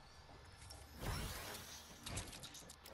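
A loud magical burst whooshes and crackles.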